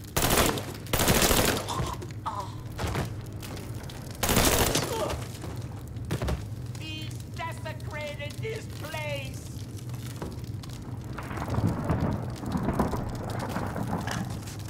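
Flames crackle nearby.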